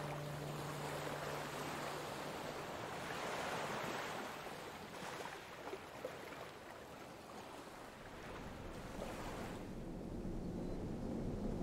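Foamy surf washes and hisses up the sand.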